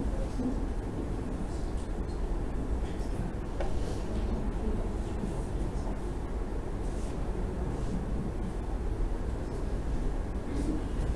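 A young man speaks calmly over an online call, heard through loudspeakers in a large echoing hall.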